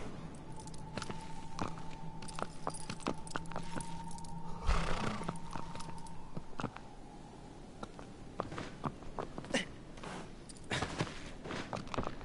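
Horse hooves thud steadily on grass.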